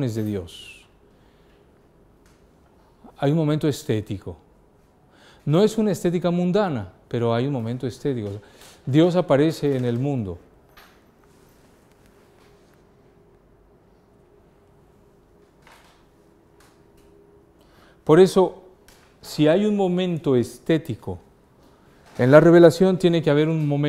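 A middle-aged man speaks through a clip-on microphone, in pauses, to a room.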